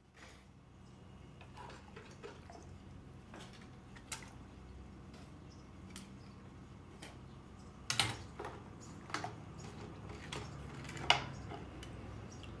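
Water sloshes and splashes as hands stir it in a metal pan.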